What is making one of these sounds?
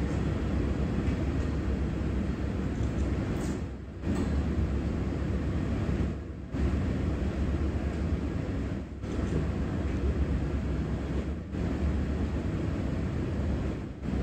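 A furnace roars steadily.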